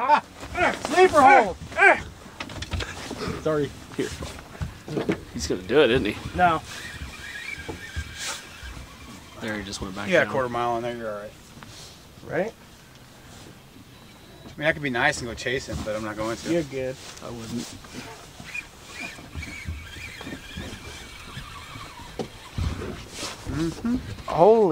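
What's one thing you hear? A man talks with excitement close by.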